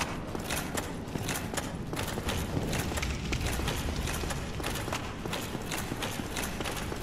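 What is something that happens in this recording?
Armored footsteps clank quickly on stone.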